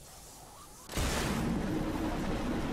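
A heavy thud sounds on landing.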